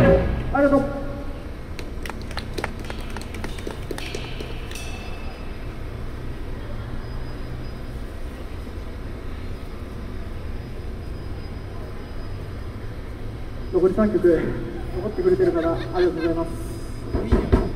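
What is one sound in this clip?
A band plays electric guitars outdoors.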